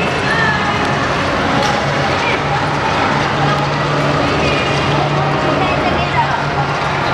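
Young children chatter and shout excitedly nearby.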